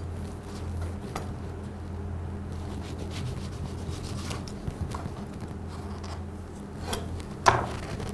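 A knife taps on a cutting board.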